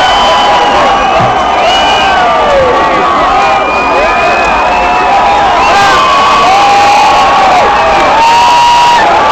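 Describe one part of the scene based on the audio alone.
A large crowd cheers and screams loudly at a concert.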